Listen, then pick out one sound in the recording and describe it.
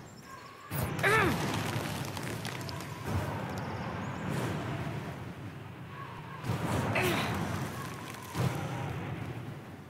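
Magic icy blasts burst with sharp whooshes, again and again.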